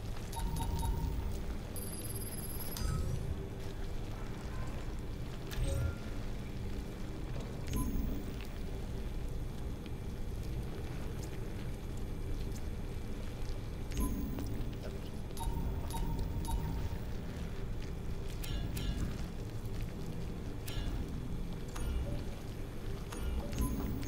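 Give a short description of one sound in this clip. Short electronic beeps and clicks sound now and then as menu items are selected.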